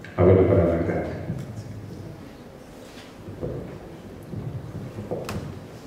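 A man speaks through a microphone in an echoing hall.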